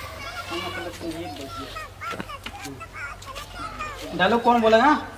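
Young men talk to each other nearby.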